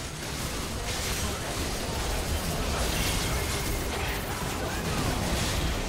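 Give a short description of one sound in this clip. Magic blasts crackle and boom in quick bursts.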